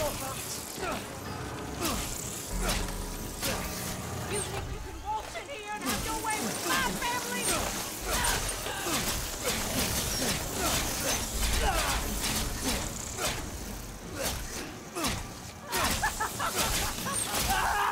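Footsteps crunch over loose rubble.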